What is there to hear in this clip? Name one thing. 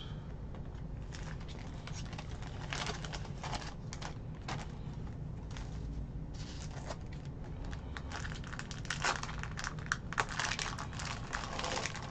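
Plastic wrappers crinkle and rustle as they are torn open.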